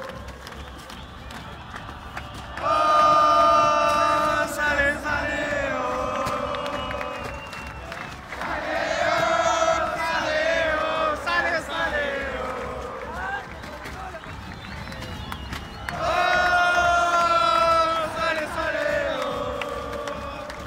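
Fans bang inflatable sticks together with dull thuds.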